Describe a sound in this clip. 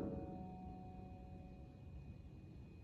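A piano chord rings out and slowly fades in a large hall.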